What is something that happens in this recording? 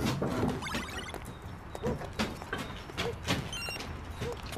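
Footsteps shuffle and clatter.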